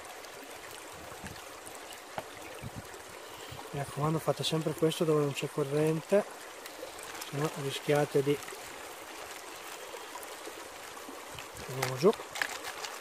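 Water swishes and sloshes as a pan is swirled in a shallow stream.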